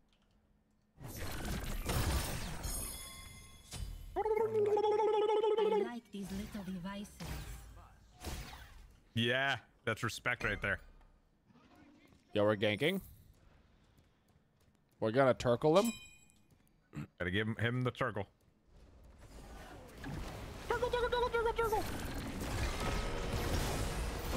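Magic effects whoosh and crackle in a video game.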